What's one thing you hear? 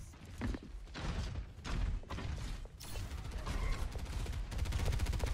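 A weapon fires rapid bursts of energy shots.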